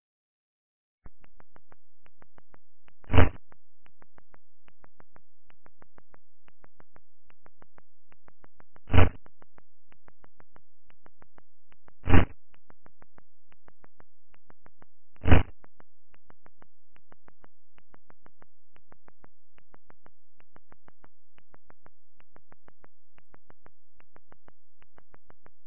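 A retro computer game ticks rapidly and steadily.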